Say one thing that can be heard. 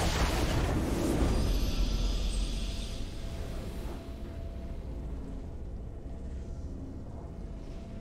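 A video game's music swells and fades.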